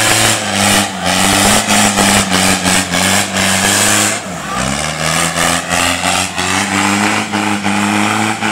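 An off-road truck engine roars loudly under heavy throttle.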